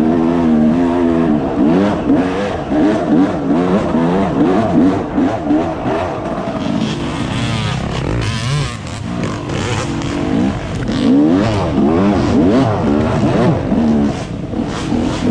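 A dirt bike engine revs up and down as it rides along a trail.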